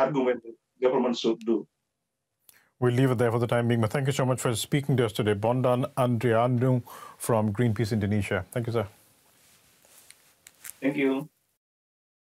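A man speaks calmly and steadily, close to a microphone.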